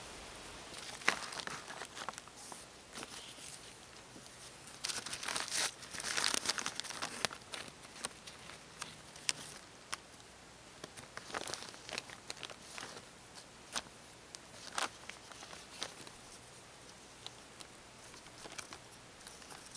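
A plastic tarp crinkles and rustles close by.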